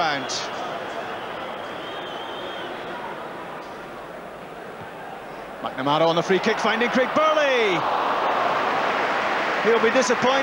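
A large stadium crowd murmurs and then roars loudly in cheer.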